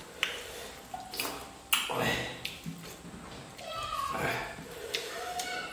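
Fingers squish and rustle through rice and food on a leaf.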